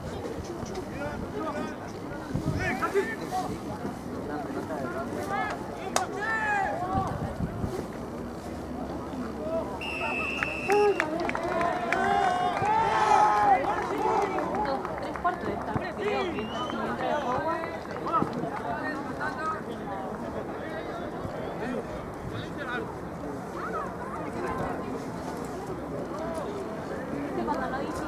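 Young players shout and call out to each other outdoors.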